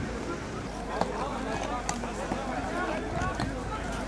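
A crowd of people chatter outdoors nearby.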